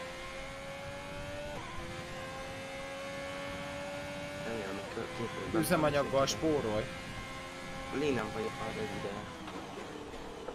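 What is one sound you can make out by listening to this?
A racing car engine hums at a steady high pitch, shifting gear once.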